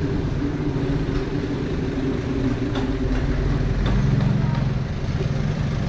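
A motorcycle engine hums as it rides ahead.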